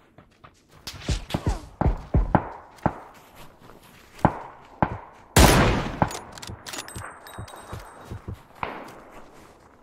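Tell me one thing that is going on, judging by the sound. Gunshots crack in quick bursts and echo.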